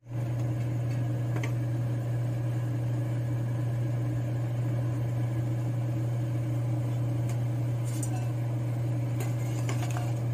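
A metal ladle clinks against a pot.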